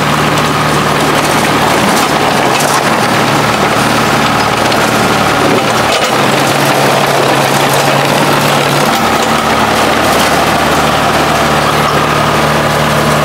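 Metal tracks of a crawler excavator clank and squeal as it moves.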